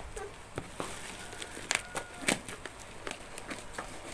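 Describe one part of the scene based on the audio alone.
Scissors snip at plastic wrapping.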